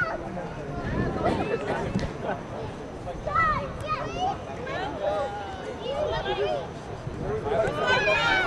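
Young women shout and call out to each other outdoors, some distance away.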